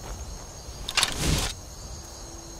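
A short, sharp whoosh sounds.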